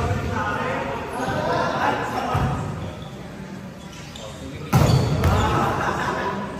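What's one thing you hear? Young people shout and call out to each other in a large echoing hall.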